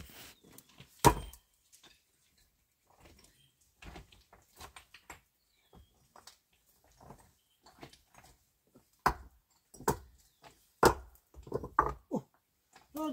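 Stones knock and clack as they are stacked.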